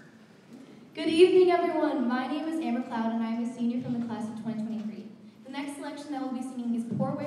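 A young mixed choir sings together in a large echoing hall.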